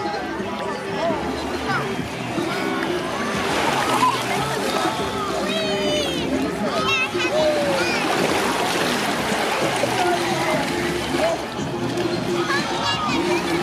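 Young children talk and squeal close by.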